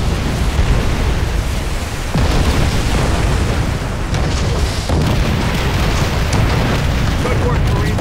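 Heavy battle noise rumbles on all around.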